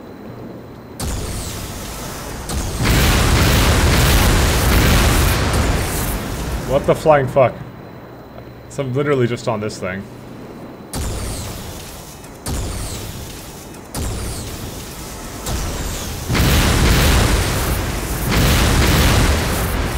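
An energy weapon fires with a loud roaring blast.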